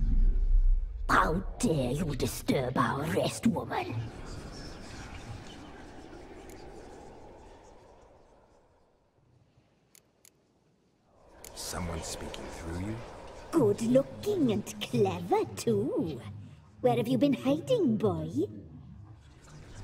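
An elderly woman speaks sharply and with reproach.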